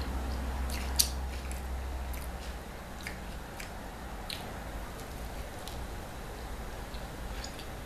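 Fingers pick and crackle at a pizza crust close to the microphone.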